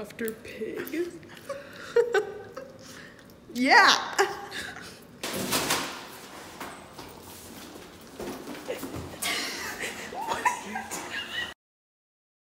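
Two young women laugh close by.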